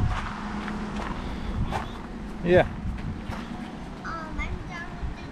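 A young child runs across crunching gravel.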